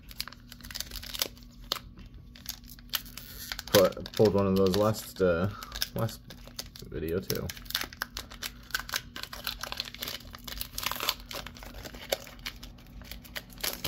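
A foil booster pack crinkles and tears open.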